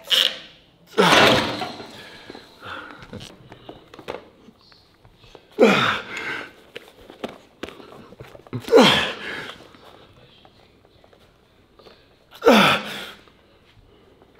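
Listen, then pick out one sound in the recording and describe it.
A man exhales hard with effort while lifting.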